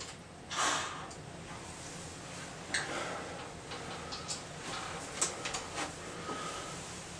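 A tenor saxophone plays nearby.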